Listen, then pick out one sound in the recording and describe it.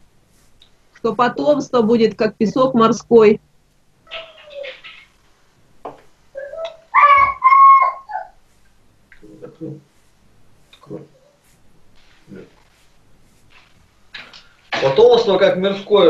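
A man talks over an online call, in short bursts with pauses.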